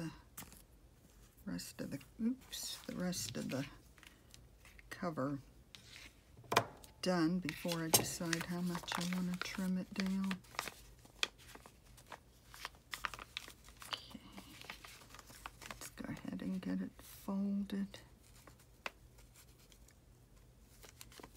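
Paper crinkles and rustles as hands handle it.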